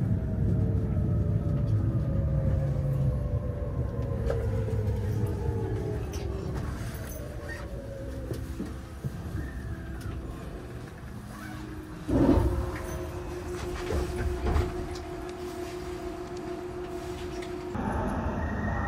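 An electric train rumbles and whines as it pulls away, heard from inside a carriage.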